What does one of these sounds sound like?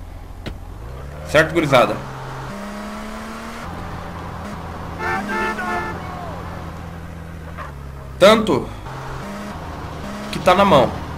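A car engine hums steadily, shifting in pitch now and then.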